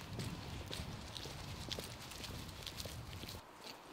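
Footsteps walk along a paved street.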